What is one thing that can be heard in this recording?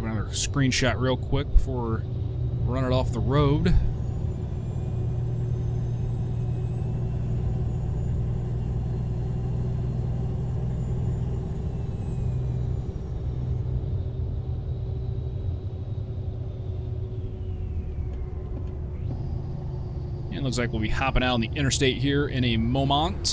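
A truck engine hums steadily at a low pitch.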